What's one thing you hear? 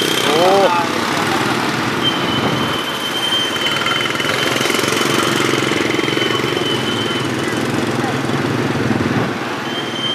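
Motorbike engines rumble close by as they pass.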